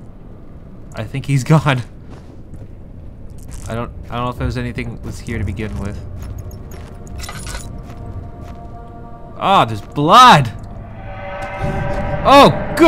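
A young man talks and exclaims loudly into a close microphone.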